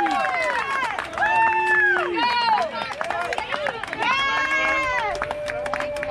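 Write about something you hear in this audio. Young boys shout and cheer close by.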